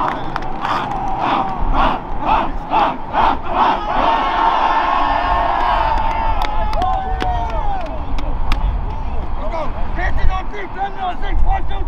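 A group of young men shout and chant together loudly outdoors.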